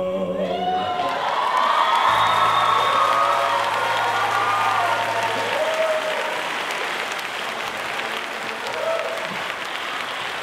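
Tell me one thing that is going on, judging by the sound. A crowd cheers and applauds loudly.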